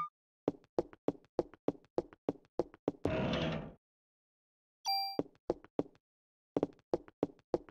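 Footsteps tap steadily on a hard floor.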